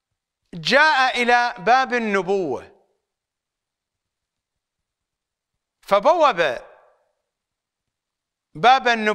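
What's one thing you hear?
A middle-aged man speaks forcefully and with emotion into a microphone, with long pauses.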